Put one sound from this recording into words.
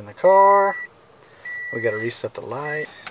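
A car's warning chime beeps twice.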